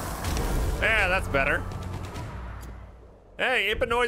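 A dragon breathes a roaring burst of fire.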